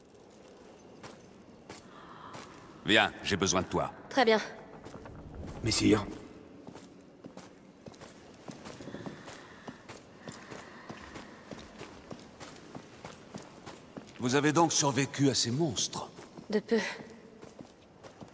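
Footsteps tap on a stone floor.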